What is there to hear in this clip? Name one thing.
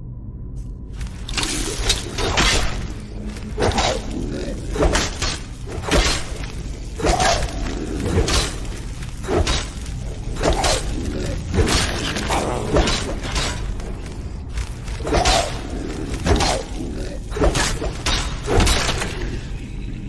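Heavy weapons clash and strike again and again in a fight.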